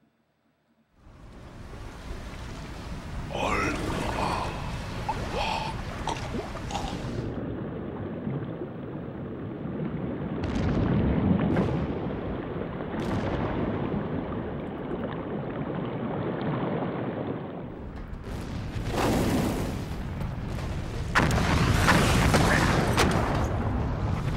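Wind rushes loudly past a man who is falling.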